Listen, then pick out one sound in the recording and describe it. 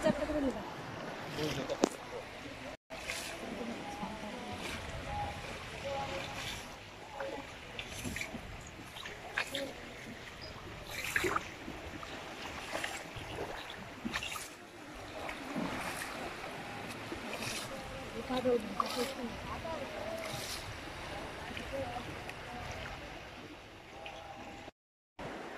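Shallow water splashes and laps around people sitting in it.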